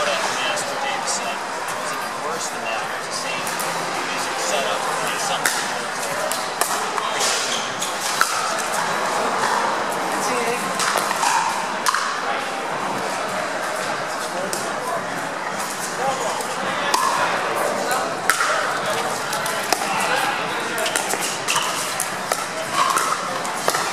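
Paddles strike a plastic ball with sharp pops in a large echoing hall.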